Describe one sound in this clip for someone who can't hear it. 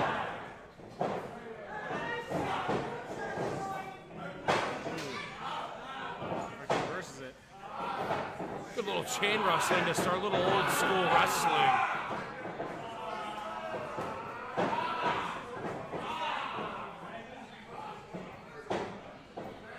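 Bodies slam onto a wrestling ring's canvas with loud thuds.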